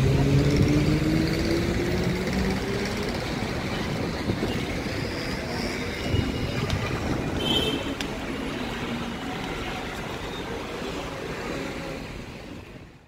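City traffic hums far below.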